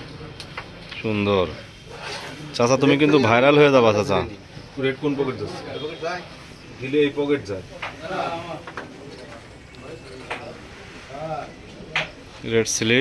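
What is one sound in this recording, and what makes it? Men talk with animation nearby.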